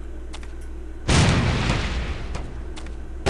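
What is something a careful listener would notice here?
Gunshots ring out in a burst.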